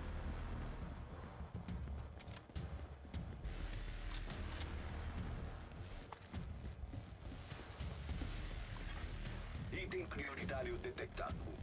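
Heavy footsteps thud steadily on pavement.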